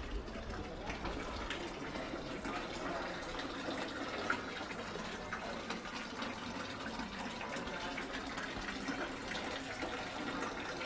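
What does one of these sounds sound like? Water trickles steadily from a fountain spout into a basin.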